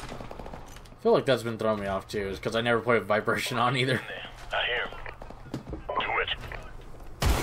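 A man speaks tersely over a radio, close by.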